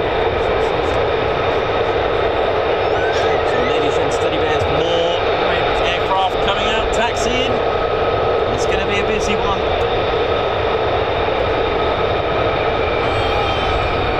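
Jet engines roar loudly and steadily close by.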